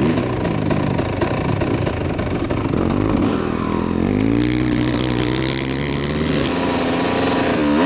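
A dirt bike engine revs loudly up and down close by.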